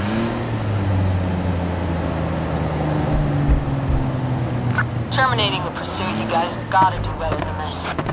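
A sports car engine idles with a low, rumbling hum.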